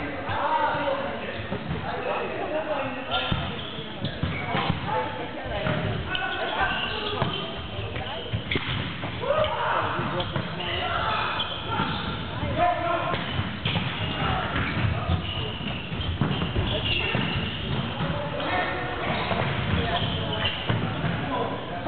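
Sneakers squeak and thud on a wooden floor.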